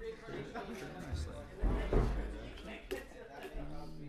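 A plastic game piece clicks down onto a table.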